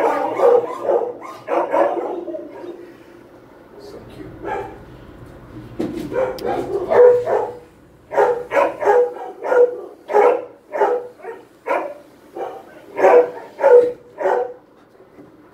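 A dog barks and howls close by in short, repeated bursts.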